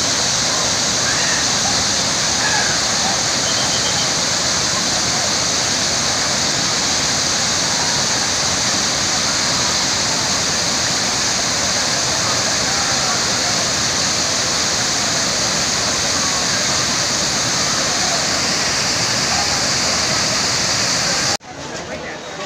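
A waterfall roars steadily outdoors.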